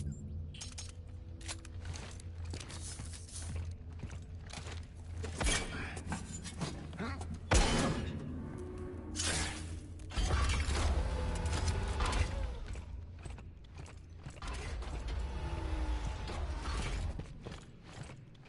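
Heavy metal boots thud on a metal floor.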